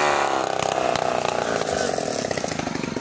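A chainsaw cuts through a log.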